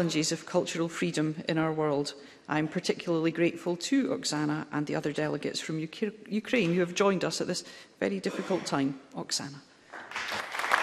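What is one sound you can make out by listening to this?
A man speaks formally through a microphone.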